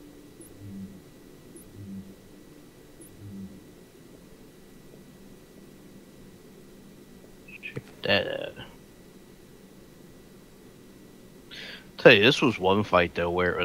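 Soft menu ticks sound as a selection moves through a list.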